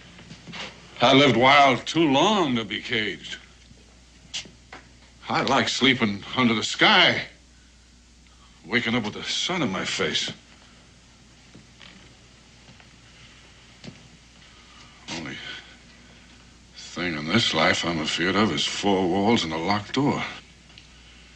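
An older man answers gruffly, close by.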